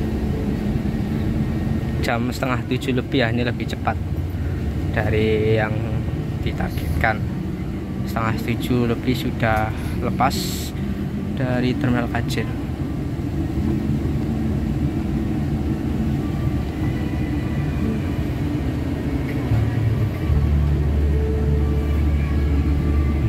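A bus engine rumbles low and steady while the bus drives.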